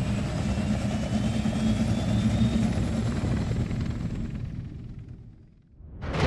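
A helicopter's rotor thumps and its engine roars overhead, then fades away.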